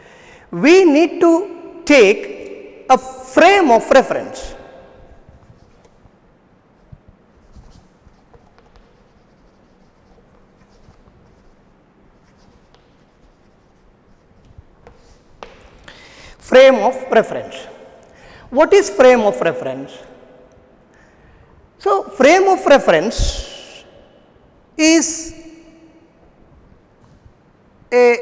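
A young man speaks clearly and calmly into a close microphone, in bursts with long pauses.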